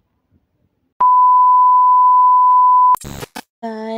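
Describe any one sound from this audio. A steady, loud, high test-signal beep sounds and then cuts off abruptly.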